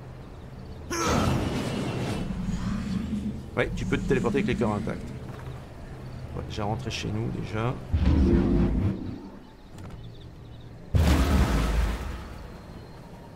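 A game's magical teleport whooshes loudly.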